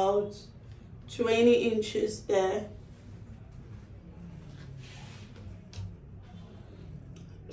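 Fabric rustles as hands smooth and fold it.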